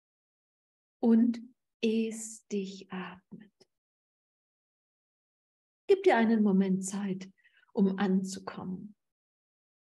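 A middle-aged woman speaks calmly into a microphone over an online call, with pauses.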